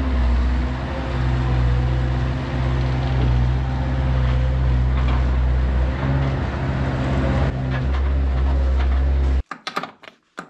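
A diesel engine of a skid-steer loader rumbles loudly as the machine drives closer.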